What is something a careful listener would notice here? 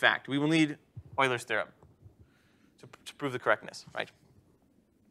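A man speaks with animation through a clip-on microphone.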